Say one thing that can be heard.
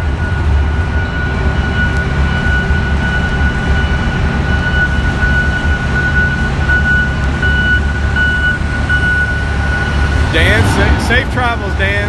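A heavy diesel engine rumbles steadily in a large echoing hall.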